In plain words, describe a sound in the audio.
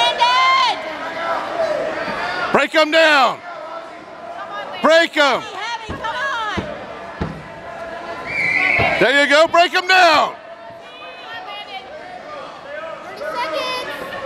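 Men shout loudly from nearby in a large echoing hall.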